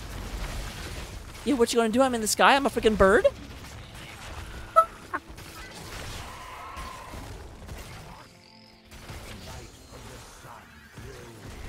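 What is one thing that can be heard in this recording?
Fighting game characters' spell blasts and weapon hits crackle and burst.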